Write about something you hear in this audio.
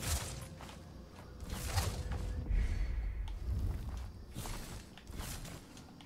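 Airy whooshes sound as a small character leaps and glides.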